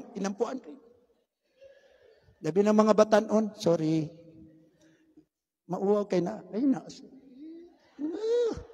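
A middle-aged man speaks slowly and calmly into a microphone, heard through loudspeakers in an echoing hall.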